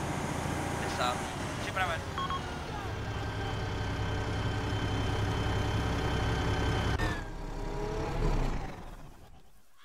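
An armoured vehicle's engine rumbles loudly as it drives past.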